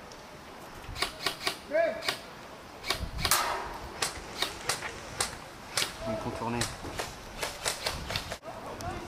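Airsoft guns fire in quick sharp snaps nearby.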